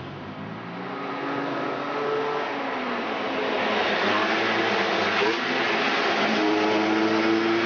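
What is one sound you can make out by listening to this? Motor scooters buzz past close by.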